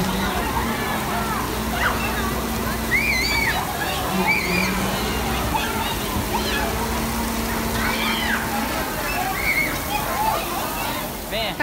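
Young children shout and squeal excitedly outdoors.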